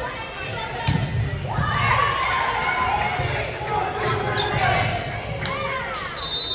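A volleyball is struck with sharp smacks in a large echoing gym.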